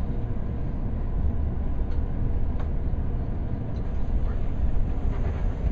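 A train rumbles low and steady while riding along the tracks.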